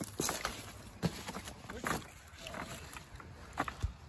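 Footsteps scrape on loose stones and rubble.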